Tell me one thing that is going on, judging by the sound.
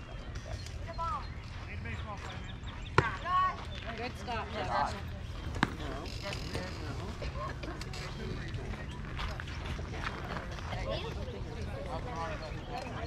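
Young girls shout and cheer from across an open field.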